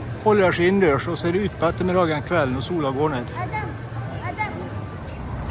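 A man talks with animation in a large echoing hall.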